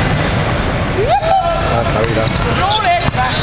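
Young men shout during the rally.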